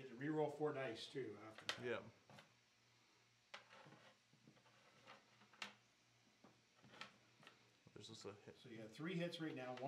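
Playing cards slide and tap on a table.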